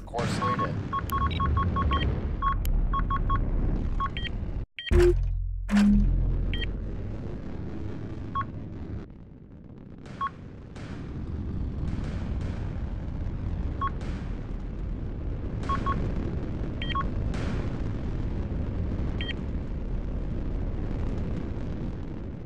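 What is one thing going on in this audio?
Engines rumble with a deep steady roar.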